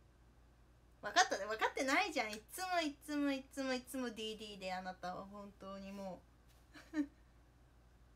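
A young woman talks and laughs brightly close to the microphone.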